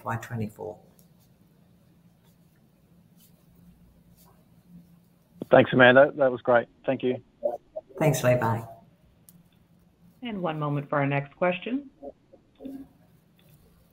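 A middle-aged woman speaks warmly in bursts over an online call.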